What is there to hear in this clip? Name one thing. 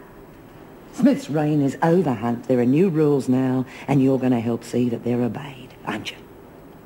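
An older woman speaks in a low, stern voice close by.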